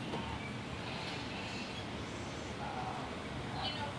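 A wooden chest lid creaks shut.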